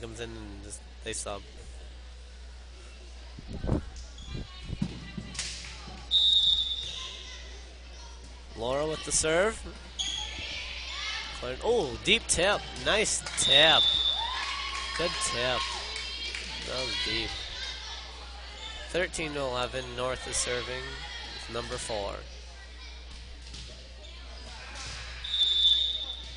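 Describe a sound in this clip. A volleyball is struck with sharp smacks in an echoing gym.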